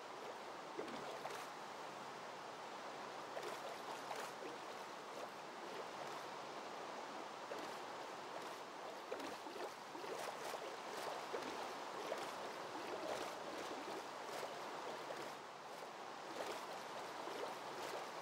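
Rain patters steadily on water.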